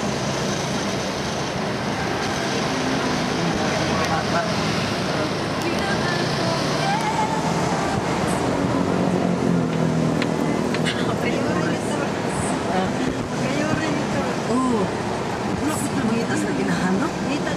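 A car engine hums steadily as the car drives.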